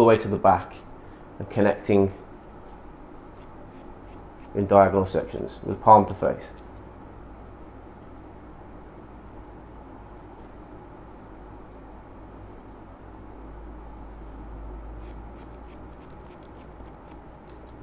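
Scissors snip through hair.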